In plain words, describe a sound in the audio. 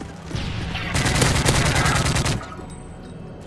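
An automatic rifle fires a rapid burst of gunshots.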